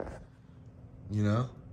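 A young woman speaks quietly close by.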